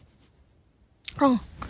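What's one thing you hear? A small dog lets out a short whine.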